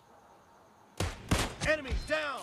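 A sniper rifle fires with a loud, sharp crack.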